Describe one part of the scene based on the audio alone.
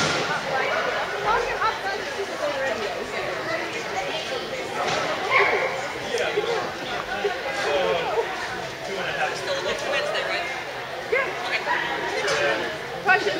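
A man calls out short commands to a dog in a large echoing hall.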